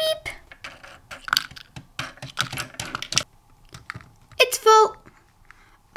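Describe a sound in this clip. Small plastic toy parts click and rattle as they are handled.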